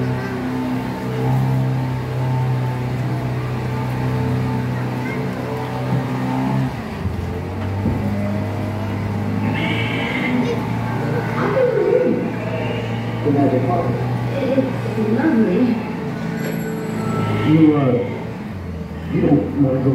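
Music plays through loudspeakers in an echoing space.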